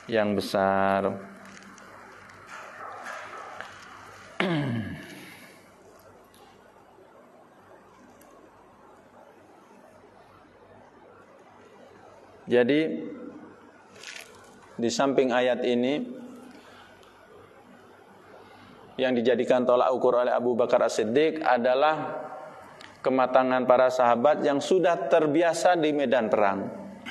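A man speaks into a microphone in bursts, with long pauses, in a reverberant hall.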